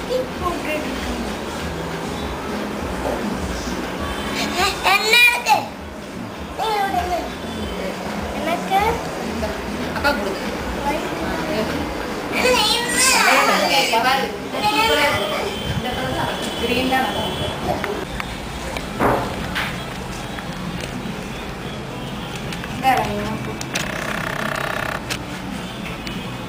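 Several women and children talk and call out.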